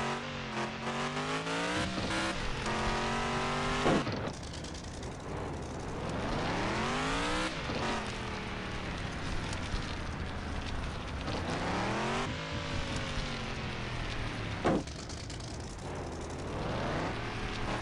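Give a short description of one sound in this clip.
A car engine revs up and down in rising and falling surges.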